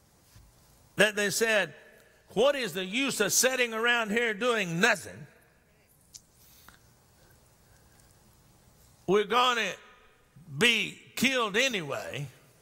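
An older man preaches with passion through a microphone, with long pauses between phrases.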